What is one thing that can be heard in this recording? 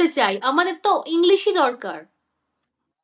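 A young woman speaks close to a microphone, softly and expressively.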